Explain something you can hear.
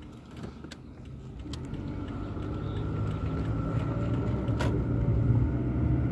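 A car engine hums from inside the car and grows louder as the car speeds up.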